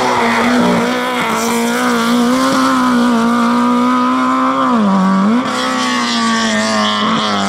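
A race car engine roars loudly as the car speeds past and away.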